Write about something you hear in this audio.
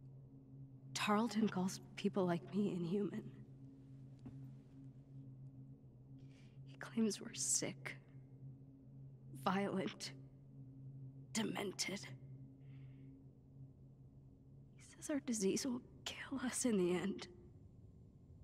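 A young woman speaks quietly in short phrases.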